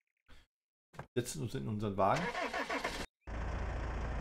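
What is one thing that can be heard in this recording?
An old pickup truck's engine starts with a cough.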